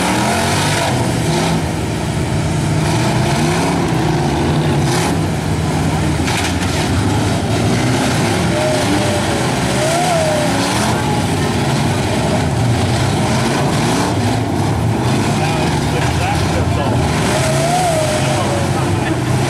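Car engines rumble and rev nearby.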